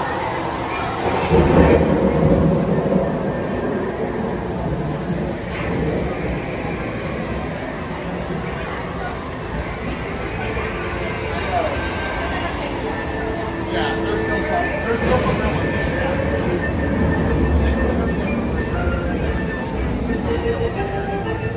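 Lively music with singing plays over loudspeakers in an echoing space.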